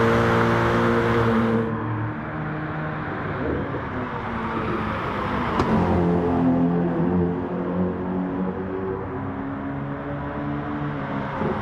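A racing car engine roars loudly, its pitch rising and falling as it shifts gears.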